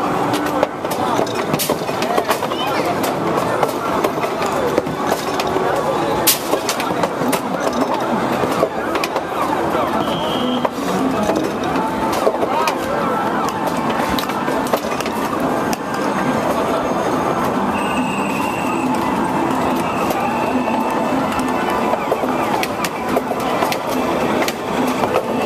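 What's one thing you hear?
Arcade game machines play electronic jingles and beeps.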